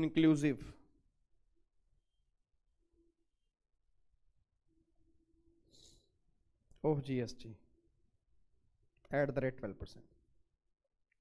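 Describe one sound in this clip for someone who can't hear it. A man speaks into a microphone in short, calm bursts with pauses between.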